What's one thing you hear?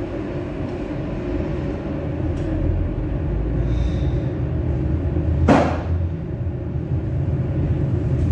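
A train cab rumbles steadily on the tracks.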